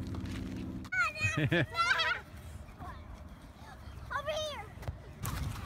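Young children shriek and shout excitedly outdoors.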